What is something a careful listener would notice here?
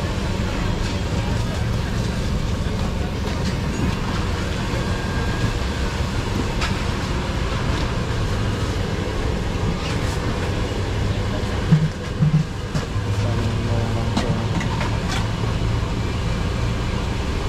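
A crowd chatters in the distance outdoors.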